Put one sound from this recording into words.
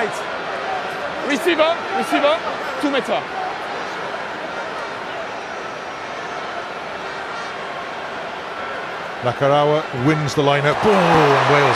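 A large stadium crowd murmurs and cheers in a wide open space.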